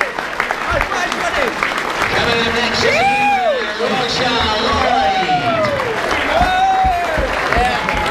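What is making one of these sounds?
Young men shout and cheer close by.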